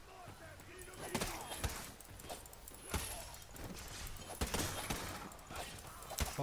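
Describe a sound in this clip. Swords clash and clang amid a battle.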